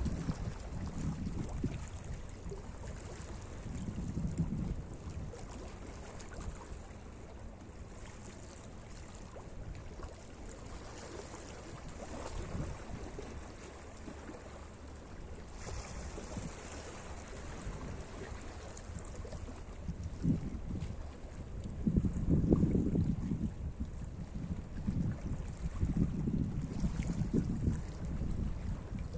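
Small waves lap gently against rocks along the shore.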